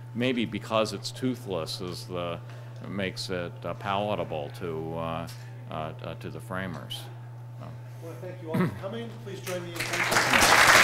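An older man speaks calmly into a microphone in an echoing hall.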